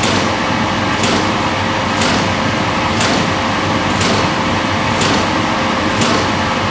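A vibration test machine roars loudly and steadily.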